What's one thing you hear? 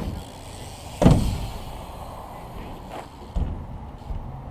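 A bike lands with a heavy thud on concrete.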